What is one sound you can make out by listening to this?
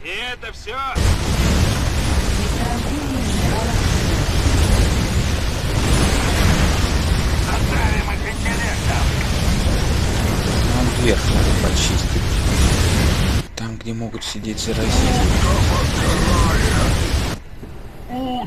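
Rapid gunfire and explosions roar in a busy battle.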